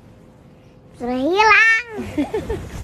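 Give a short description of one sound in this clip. A young child squeals loudly and laughs close by.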